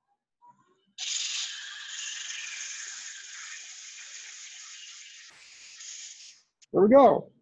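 Sandpaper hisses against spinning wood.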